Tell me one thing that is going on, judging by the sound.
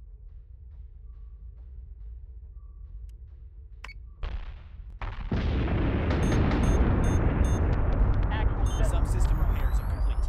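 A deep, steady rumble of huge ship engines drones on.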